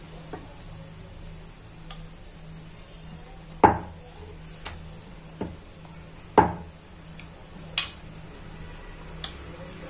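A rolling pin knocks against a wooden board.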